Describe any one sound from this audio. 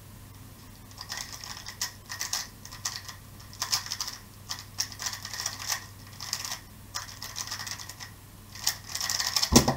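A plastic puzzle cube clicks and clacks rapidly as it is turned.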